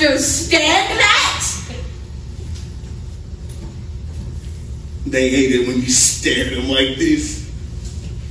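A man speaks loudly and with animation in a hall.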